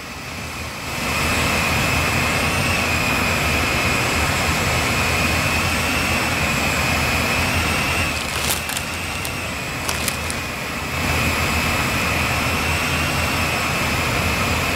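A jet engine roars steadily with a high whine.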